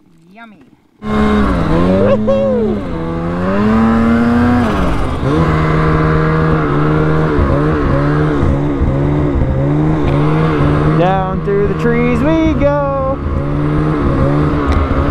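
A snowmobile engine roars and revs up and down close by.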